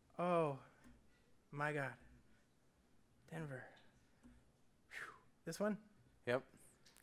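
A man speaks into a microphone in short, halting phrases.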